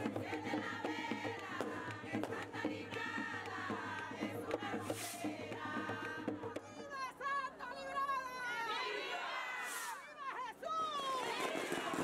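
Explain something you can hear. A crowd of men and women sings loudly together.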